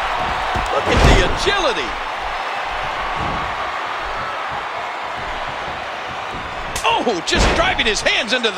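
A body slams down hard onto a wrestling ring mat with a heavy thud.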